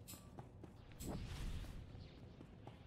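An energy blast crackles and whooshes.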